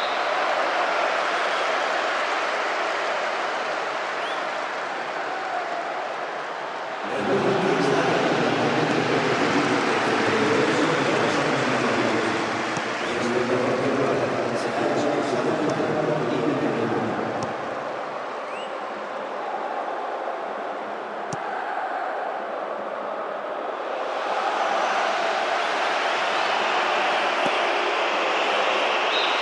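A large stadium crowd cheers and chants steadily.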